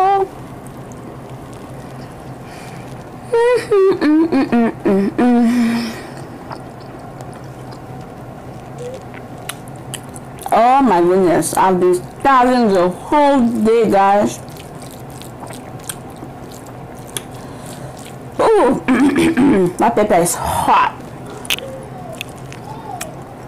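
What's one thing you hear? A young woman chews food and smacks her lips.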